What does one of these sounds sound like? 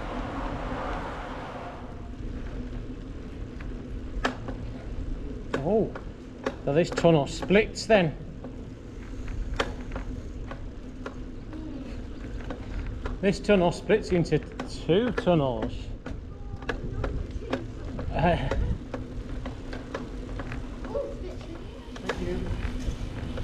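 Bicycle tyres roll steadily on a paved path.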